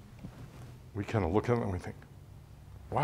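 An older man speaks calmly, heard from a short distance.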